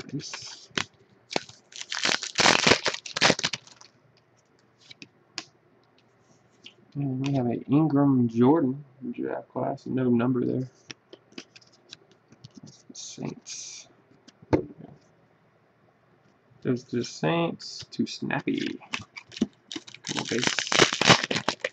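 A foil card pack wrapper crinkles in the hands.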